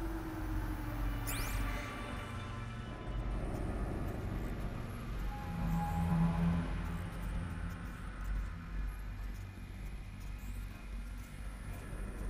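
A low, steady drone hums throughout.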